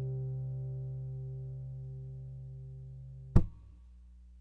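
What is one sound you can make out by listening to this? An acoustic guitar chord rings and slowly fades.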